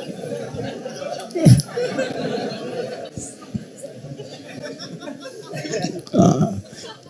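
A crowd murmurs softly.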